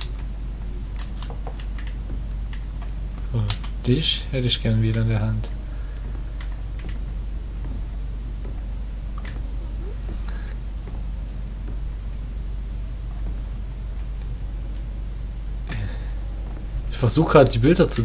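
Slow footsteps tread on a creaking wooden floor.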